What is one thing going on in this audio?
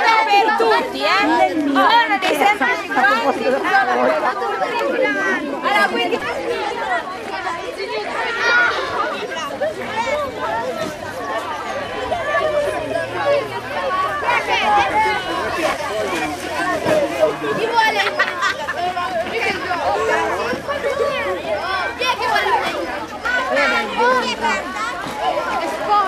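A crowd of children chatter and shout excitedly close by, outdoors.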